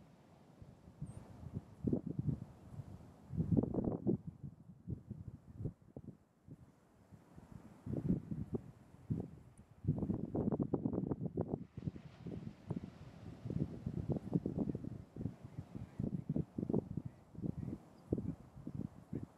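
Surf rolls and breaks on a shore nearby.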